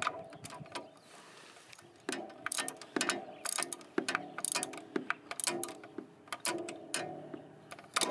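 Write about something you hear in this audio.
A metal socket clicks and scrapes onto a bolt.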